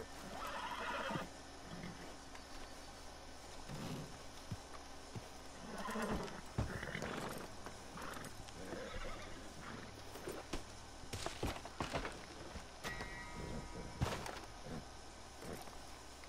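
Wooden wagon boards creak and knock as men climb on.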